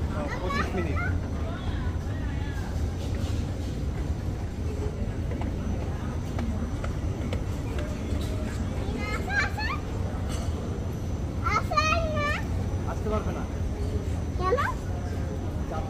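A small child calls out in a high voice nearby.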